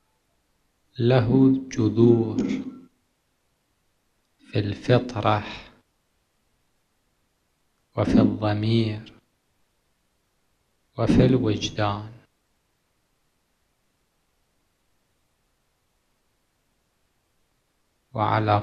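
A middle-aged man speaks slowly and solemnly into a microphone, with long pauses between phrases.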